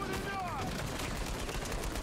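A gun fires in rapid shots.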